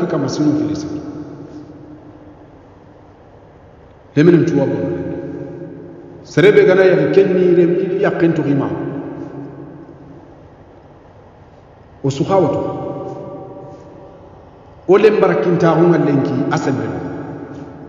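A young man recites slowly in a chanting voice through a microphone, with a heavy echo.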